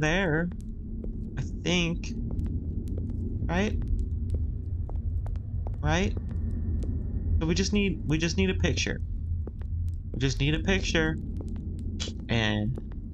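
A torch flame crackles softly.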